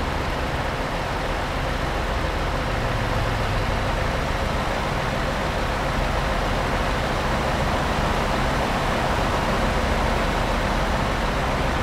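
A heavy truck engine drones steadily as it drives along a highway.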